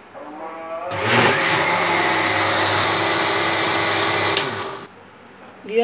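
A blender whirs loudly.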